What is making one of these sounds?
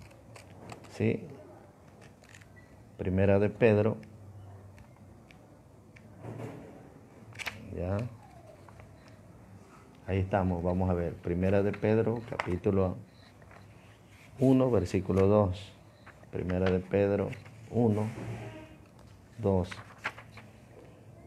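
An older man speaks calmly and close by, in short bursts with pauses.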